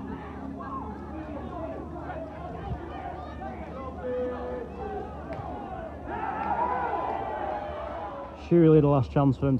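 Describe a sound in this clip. Players shout and argue on an open field.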